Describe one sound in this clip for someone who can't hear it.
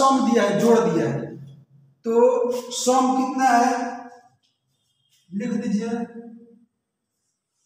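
An adult man speaks calmly and clearly, close by.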